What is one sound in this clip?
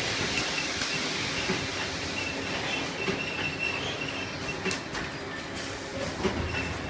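A filling machine hums and whirs steadily.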